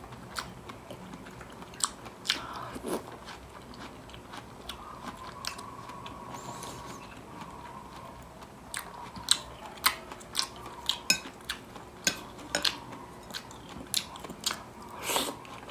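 A spoon clinks against a glass dish.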